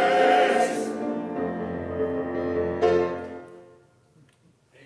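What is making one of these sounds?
A choir sings together in a large echoing hall and stops.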